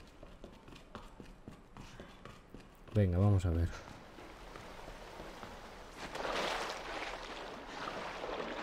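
Footsteps tread slowly on a hard, wet floor.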